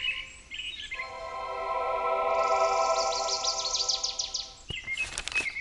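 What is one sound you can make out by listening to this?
A magical chime shimmers and rings out.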